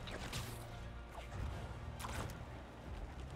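A taut line whips and whooshes through the air.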